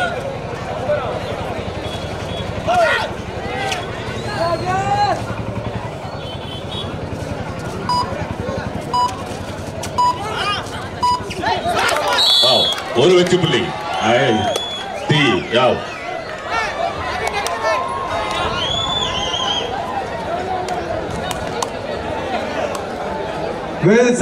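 A large crowd cheers and shouts loudly in a big echoing hall.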